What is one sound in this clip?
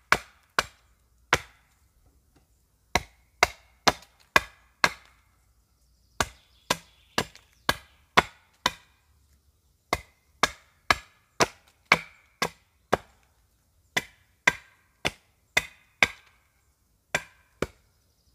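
A hatchet chops sharply into wood in quick, steady strokes.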